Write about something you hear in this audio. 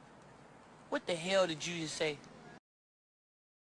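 A man exclaims in disbelief.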